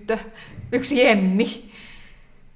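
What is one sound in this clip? A woman speaks brightly and close by.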